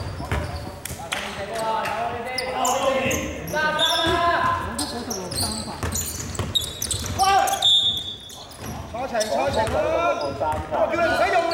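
Young men shout and call to each other in an echoing hall.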